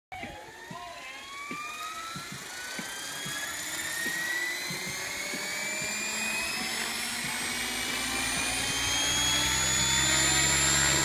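A model helicopter's motor whines, rising steadily in pitch as it spins up.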